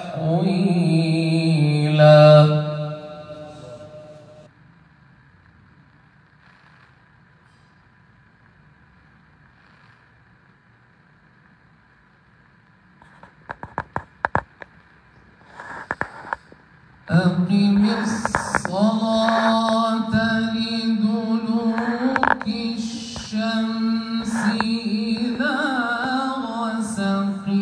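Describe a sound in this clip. A man chants melodically into a microphone over loudspeakers, in a large echoing space.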